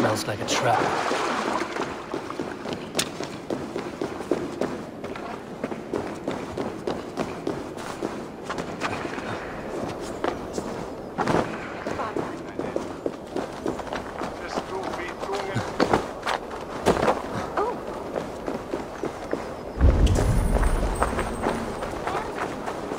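Quick footsteps patter over stone and rooftops.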